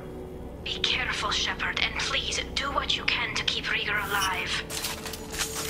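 A young woman speaks calmly through a filtered, electronic-sounding voice.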